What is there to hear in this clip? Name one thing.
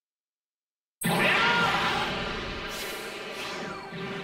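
A burst of energy roars loudly.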